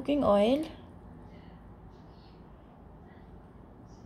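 Liquid pours softly into a bowl.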